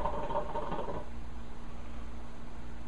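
A young man exhales a long breath of smoke.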